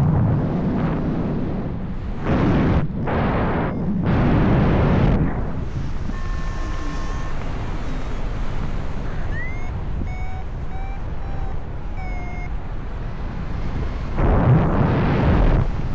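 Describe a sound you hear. Wind rushes loudly past in open air, gusting stronger and weaker.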